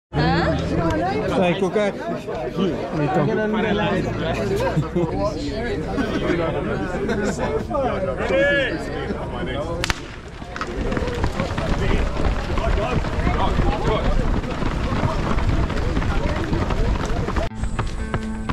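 A crowd of men and women chat with animation close by, outdoors.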